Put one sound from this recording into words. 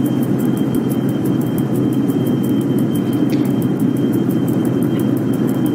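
An electric locomotive rumbles along rails.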